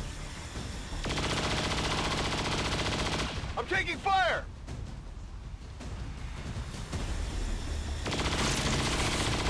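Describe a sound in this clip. A laser weapon fires with a steady buzzing hum.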